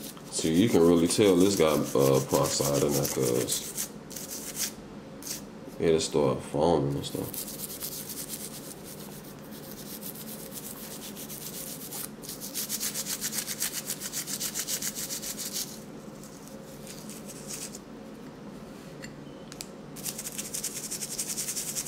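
A toothbrush scrubs rapidly against a small hard object.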